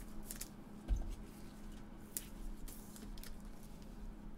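A hard plastic case clicks and taps as it is handled.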